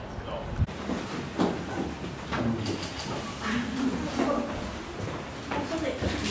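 A tiger licks its paw with wet lapping sounds.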